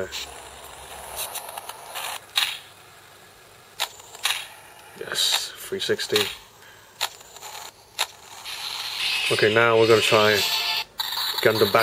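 Video game sound effects and music play from a small speaker.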